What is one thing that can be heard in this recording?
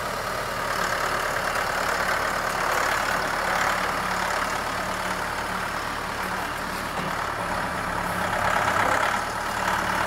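Gravel scrapes and crunches under a loader bucket.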